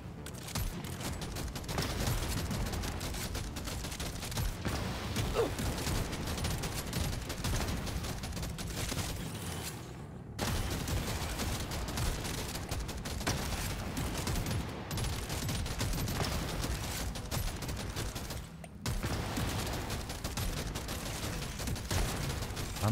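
Rapid gunfire rattles and crackles.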